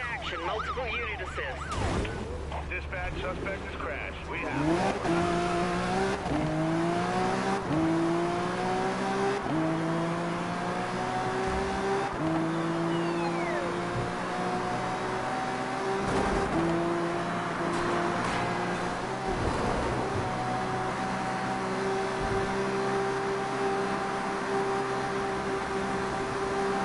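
A sports car engine revs and climbs through the gears as the car speeds up.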